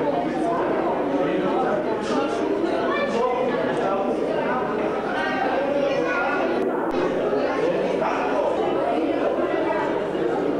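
A crowd of women and men chatter and laugh close by.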